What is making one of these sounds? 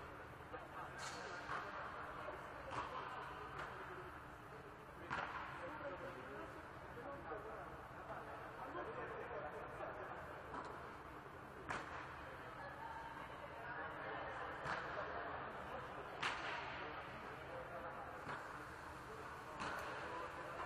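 A volleyball is struck now and then, echoing in a large hall.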